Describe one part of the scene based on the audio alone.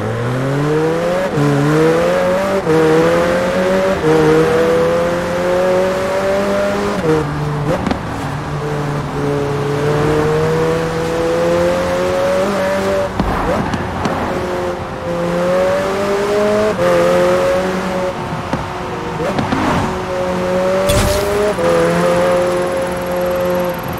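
A sports car engine roars loudly, rising in pitch through each gear and dropping sharply at every shift.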